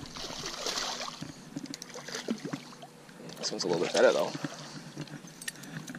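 A fishing reel clicks as its line is wound in.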